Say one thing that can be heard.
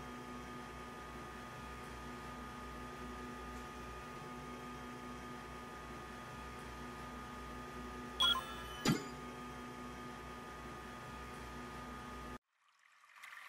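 Soft, steady background music plays.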